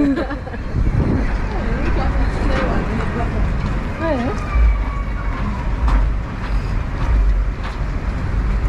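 Traffic rumbles steadily in the distance.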